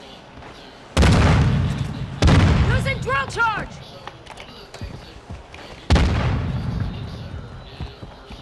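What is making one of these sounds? Gunshots boom with a long echoing rumble.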